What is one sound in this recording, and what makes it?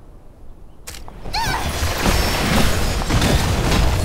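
Magic blasts crackle and whoosh in a fight.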